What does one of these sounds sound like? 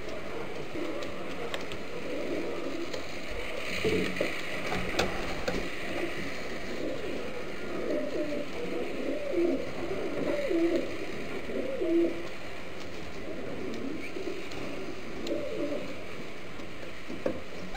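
A pigeon's feet scratch and patter on a dusty floor.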